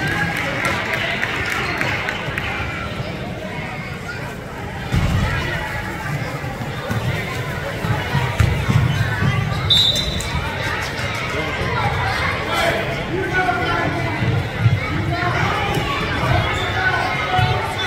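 A basketball bounces on a hardwood floor in a large echoing gym.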